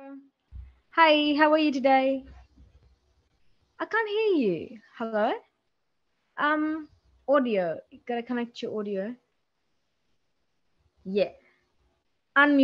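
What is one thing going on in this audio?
A young woman speaks with animation into a microphone over an online call.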